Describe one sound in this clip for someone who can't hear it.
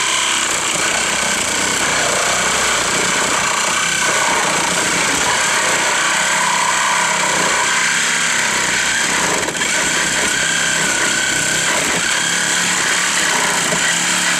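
A gas-powered engine drones steadily nearby.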